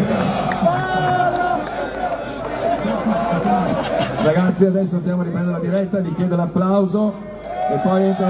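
A man speaks into a microphone, heard through loudspeakers outdoors.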